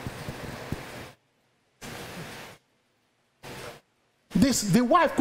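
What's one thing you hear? A man speaks with emphasis through a microphone, in short bursts with pauses.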